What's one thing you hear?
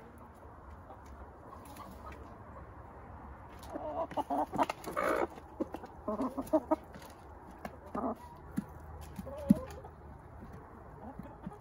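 Chickens peck and tap at grain in a plastic feeder.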